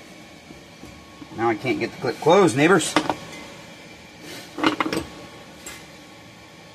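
Metal parts clink as a man works on an engine.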